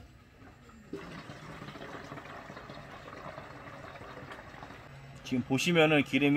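Fuel gurgles and splashes as it is pumped into a tank.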